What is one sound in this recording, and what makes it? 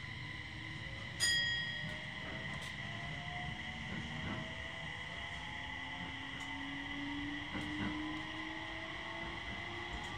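Train wheels squeal with rising and falling whines.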